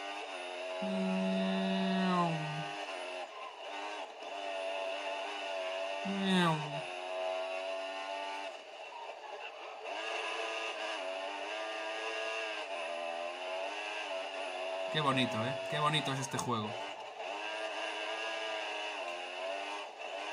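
A racing car engine whines loudly, rising and falling in pitch as the car shifts gears.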